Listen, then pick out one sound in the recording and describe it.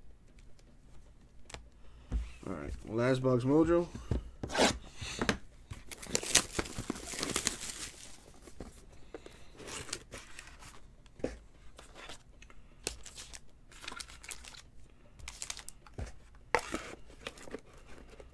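Hands handle trading cards with soft slides and taps.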